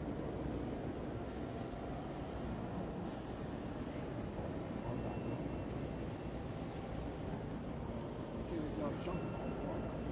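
A crowd of visitors murmurs in a large echoing hall.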